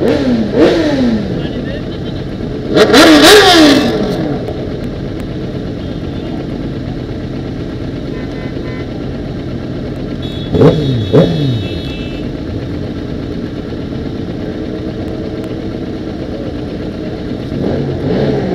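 A motorcycle engine revs sharply several times.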